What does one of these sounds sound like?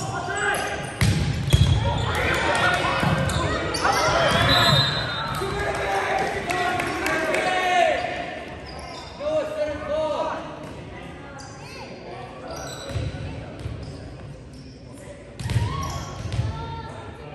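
A volleyball thumps off hands and arms in a large echoing gym.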